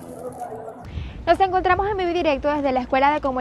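A young woman speaks clearly into a microphone.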